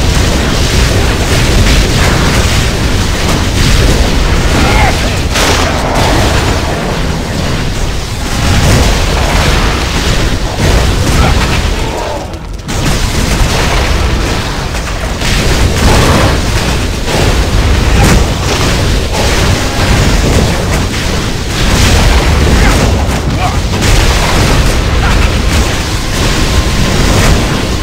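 Magic spells crackle and blast in a fast fight.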